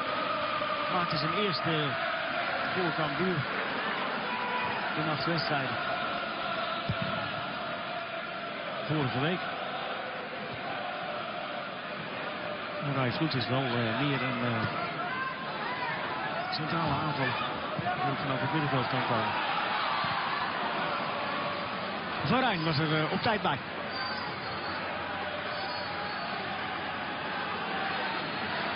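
A large crowd chants and murmurs steadily in a stadium.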